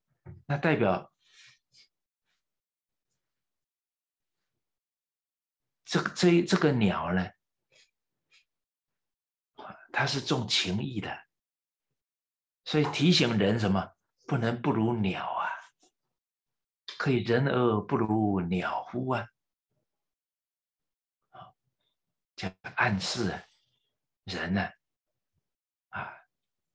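A middle-aged man speaks calmly and with animation to a microphone, with pauses between phrases.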